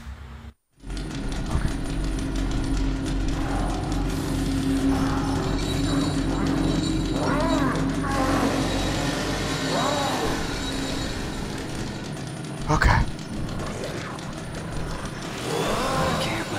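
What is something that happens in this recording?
Soft footsteps shuffle on a hard floor.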